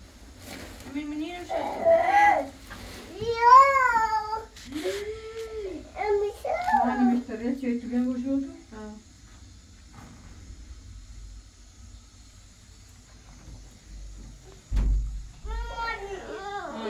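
A young child talks and calls out in a high voice.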